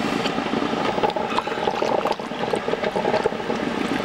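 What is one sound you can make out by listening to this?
Coffee pours into a mug.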